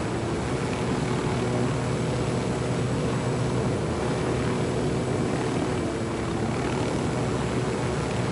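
A helicopter's engine whines steadily.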